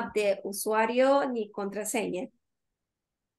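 A young woman speaks with animation through an online call.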